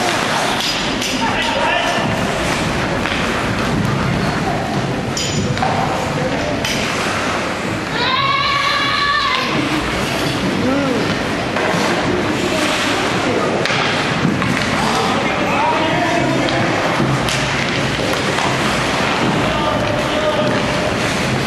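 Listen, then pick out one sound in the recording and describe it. Young players and spectators shout now and then.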